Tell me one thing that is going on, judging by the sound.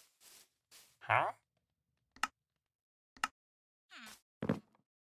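A villager grunts with a low, nasal murmur.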